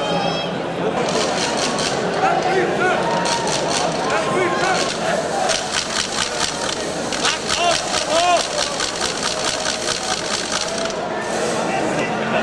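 Fans clap their hands rhythmically.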